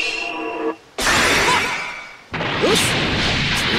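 Heavy blows and energy bursts strike in quick succession.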